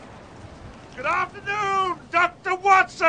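A man speaks calmly in a greeting.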